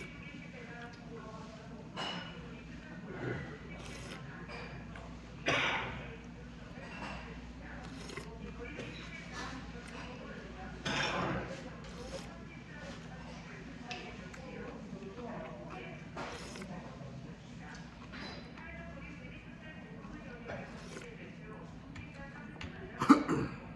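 A metal spoon clinks against a bowl.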